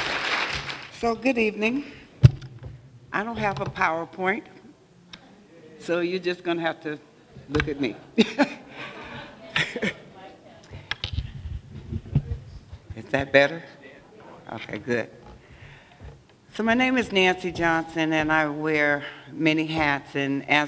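An older woman speaks into a microphone in a calm, measured voice, with pauses.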